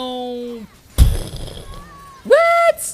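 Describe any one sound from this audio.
A magic spell blasts with a loud boom.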